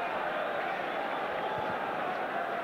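A football thuds off a kicking foot.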